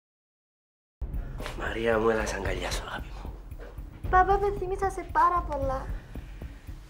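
A man speaks quietly and emotionally, close by.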